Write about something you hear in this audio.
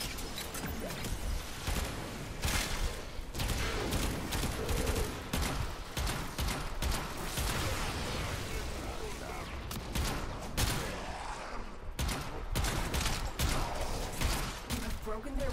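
Rapid gunfire bursts in loud, sharp volleys.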